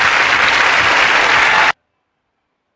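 A crowd roars and cheers loudly.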